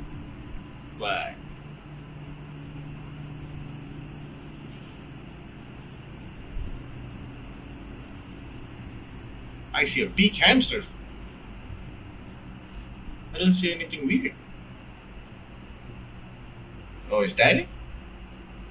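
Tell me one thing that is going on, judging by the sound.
A man reacts with short exclamations close to a microphone.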